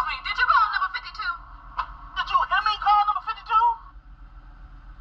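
A small television speaker plays a broadcast, sounding tinny and close.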